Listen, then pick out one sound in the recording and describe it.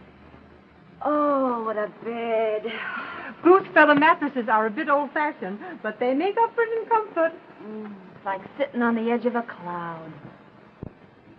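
Women talk with animation, heard through an old, thin-sounding film soundtrack.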